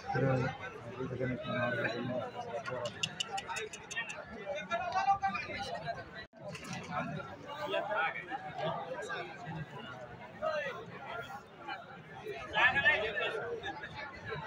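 Men in the crowd shout and call out with excitement.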